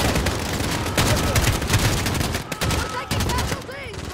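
A rifle fires in short, loud bursts.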